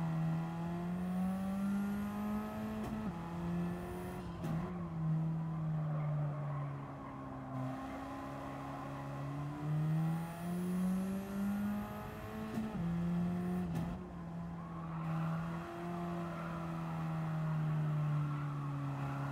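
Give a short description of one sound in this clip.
A racing car engine drones loudly, rising and falling in pitch as it shifts gears.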